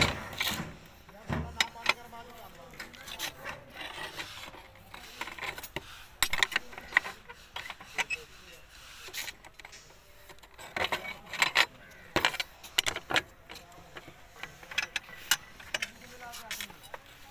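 Steel bars clink and scrape against each other as they are bent by hand.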